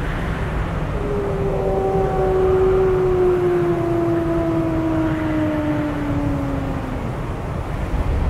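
A wolf howls long and low, slowly falling in pitch.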